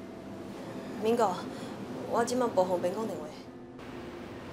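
A young woman speaks quietly into a phone.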